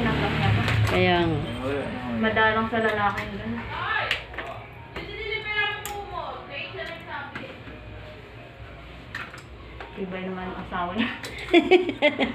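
Small plastic switches click and snap close by.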